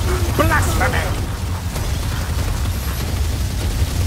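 A magic bolt whooshes and crackles.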